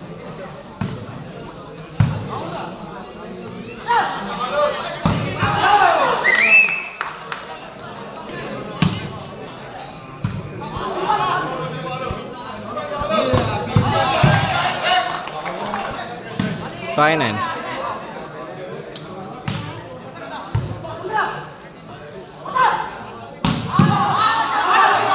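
A crowd of young men shouts and cheers outdoors.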